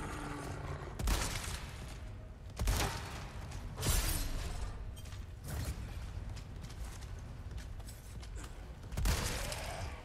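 A rifle fires sharp, loud shots several times.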